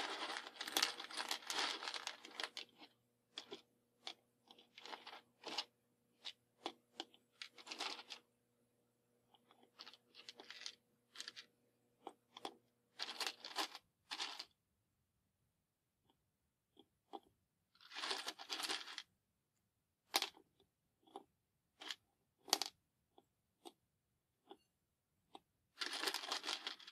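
Wooden matchsticks rattle and clatter as hands sort them on a table.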